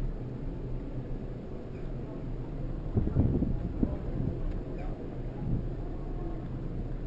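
Wind rumbles across a microphone riding along a street on a bicycle.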